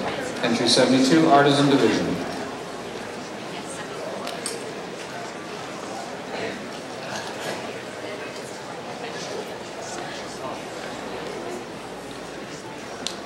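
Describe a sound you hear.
An elderly man speaks through a microphone in a large echoing hall.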